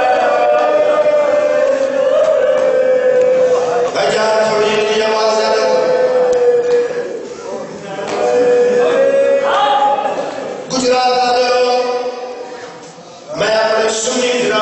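A young man recites in a loud, chanting voice through a microphone and loudspeakers.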